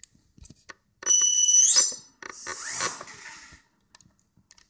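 A small electric motor whines as it spins up a propeller in short bursts.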